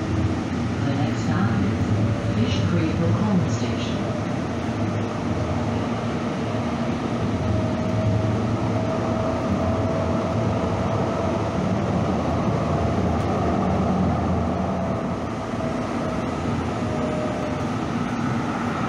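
Steel wheels click and squeal on the rails.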